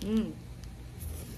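A young woman makes a short vocal sound close by.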